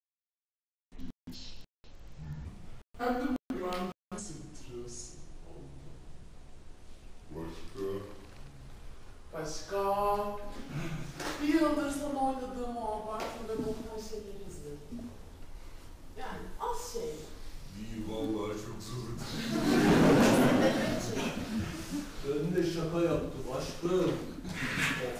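A young man speaks.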